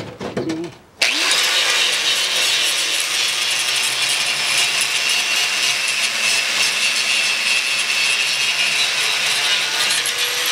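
An angle grinder whines loudly, grinding metal.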